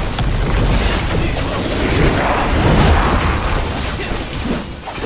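A deep rumbling booms beneath the fighting.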